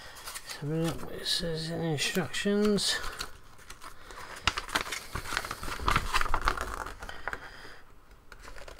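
Paper rustles as a leaflet is unfolded.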